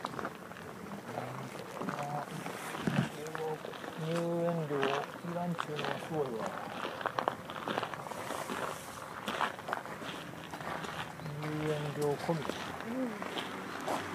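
Footsteps crunch on a gravel path outdoors.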